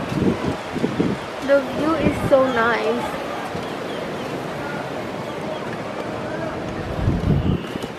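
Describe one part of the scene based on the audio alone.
Strong wind gusts roar against the microphone outdoors.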